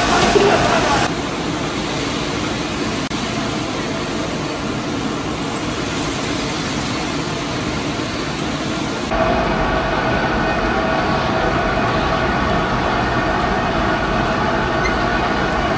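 Oil and liquid bubble and sizzle loudly in a large pan.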